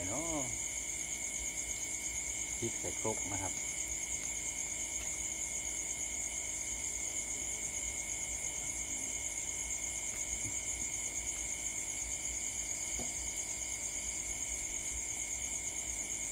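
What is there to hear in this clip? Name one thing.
Hands rustle and tear leafy vegetables.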